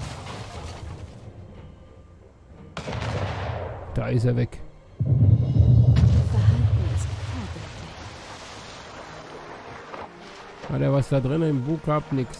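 Cannons fire with deep booms that roll away.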